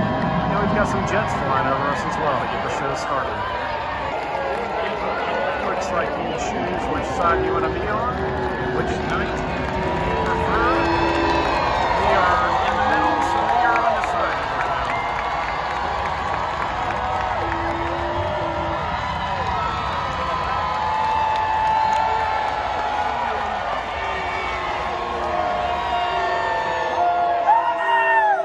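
A large outdoor crowd cheers and shouts throughout.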